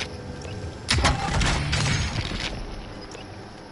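A supply crate bursts open with a loud clatter.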